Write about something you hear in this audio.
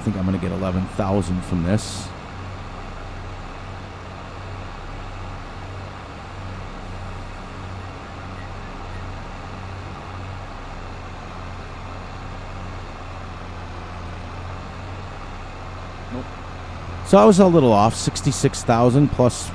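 A tractor engine hums steadily.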